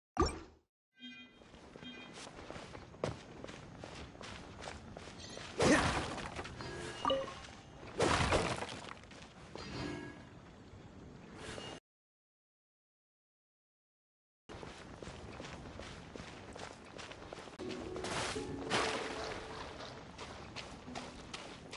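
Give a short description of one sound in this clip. Quick footsteps run over grass and sand.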